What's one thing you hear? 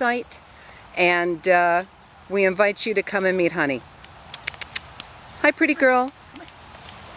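A woman talks close by in a high, coaxing voice.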